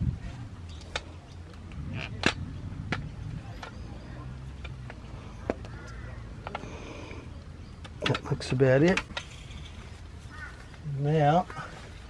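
A metal pole clinks and knocks as it is handled.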